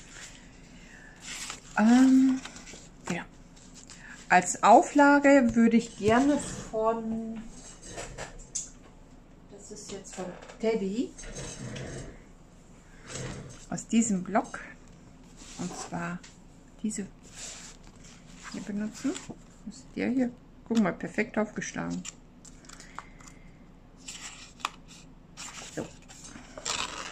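Sheets of paper rustle and slide as they are moved about.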